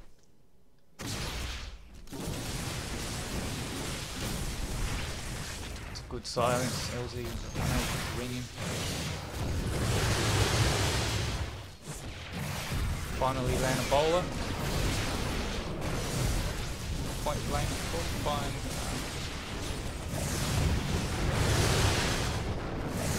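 Energy weapons zap and blasts crackle in a fast battle.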